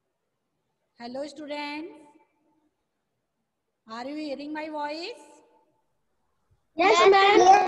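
A middle-aged woman speaks calmly into a headset microphone, close by.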